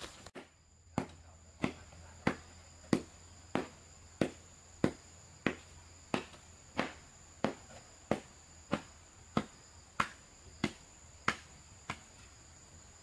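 A wooden pole thumps the ground in a steady beat.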